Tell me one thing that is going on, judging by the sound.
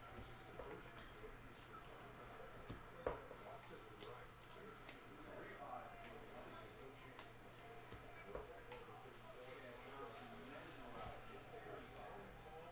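Trading cards flick and tap as they are handled.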